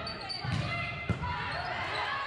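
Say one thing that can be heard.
A volleyball is hit with a loud smack.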